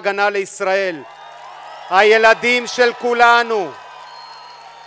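A man speaks loudly and emphatically into a microphone, amplified over loudspeakers.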